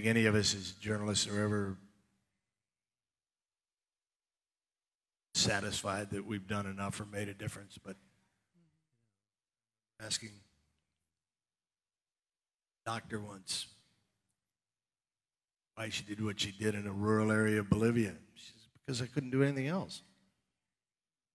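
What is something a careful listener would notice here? An older man speaks calmly into a headset microphone, with pauses.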